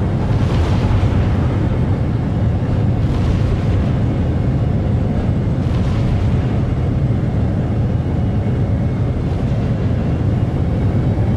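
A spaceship engine rumbles deeply and steadily.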